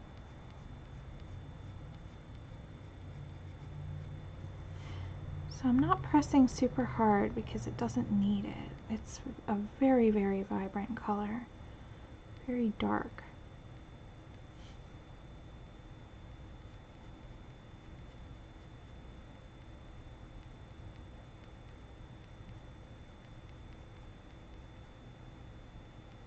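A colored pencil scratches softly on paper.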